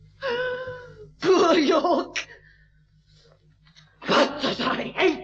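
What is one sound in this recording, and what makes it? An elderly man groans and speaks in a strained, rasping voice close by.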